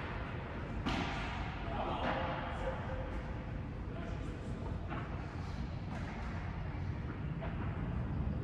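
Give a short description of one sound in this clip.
Rackets hit a ball with sharp pops in a large echoing hall.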